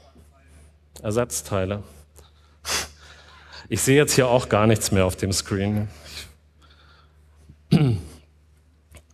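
A man speaks with animation through a loudspeaker.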